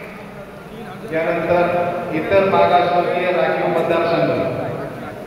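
A man speaks loudly with animation nearby.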